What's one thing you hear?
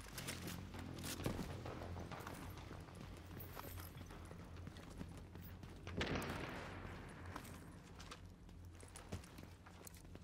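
Footsteps thud on stairs.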